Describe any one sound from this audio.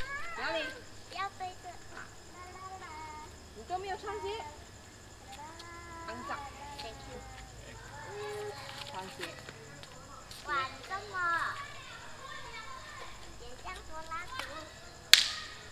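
Children shout and chatter excitedly outdoors.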